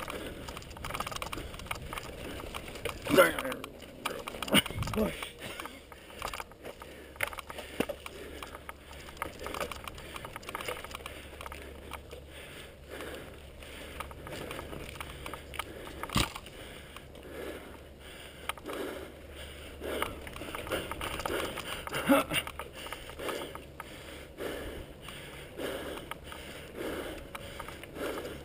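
Bicycle tyres crunch and rattle over a dirt trail.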